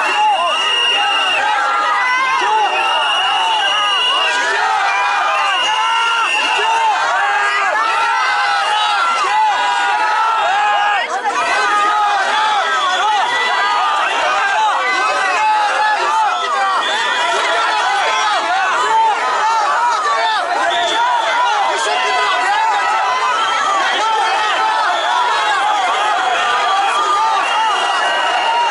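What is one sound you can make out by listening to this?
A large outdoor crowd of men and women shouts and clamours.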